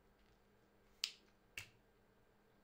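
Tripod legs knock and click under a hand.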